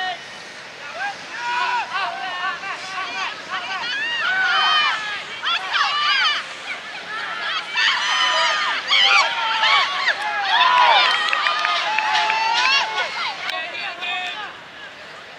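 Boys shout and call out across an open field.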